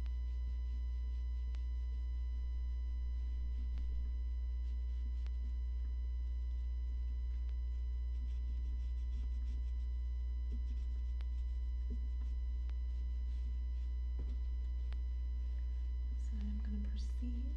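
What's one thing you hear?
A cloth rubs and squeaks softly against a leather bag.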